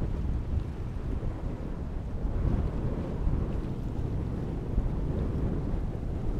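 Strong wind rumbles and buffets outdoors.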